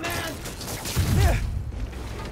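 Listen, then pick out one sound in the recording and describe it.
A heavy blow lands with a deep thud.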